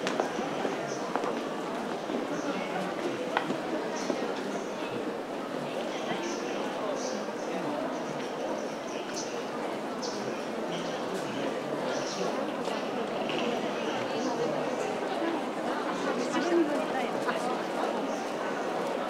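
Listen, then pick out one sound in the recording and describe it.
Many footsteps tap on a hard floor.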